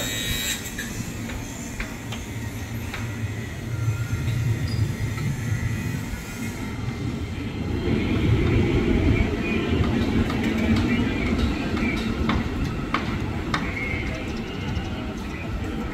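An electric train pulls away and rumbles off.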